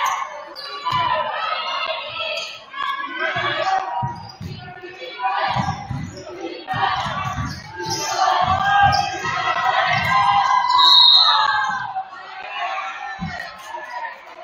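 A basketball bounces on a wooden floor with hollow thumps.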